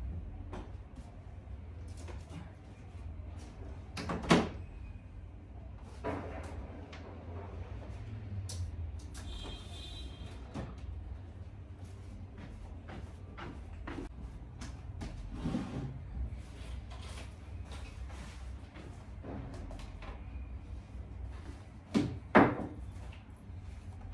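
Footsteps move about on a hard floor nearby.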